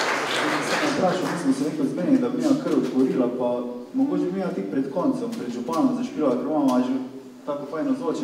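A nylon-string guitar is played.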